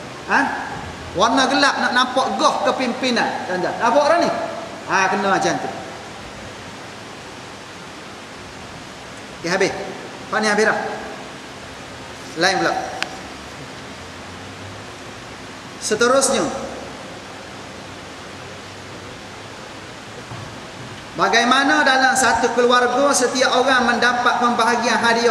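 A man speaks calmly into a close microphone, with pauses, in a slightly echoing room.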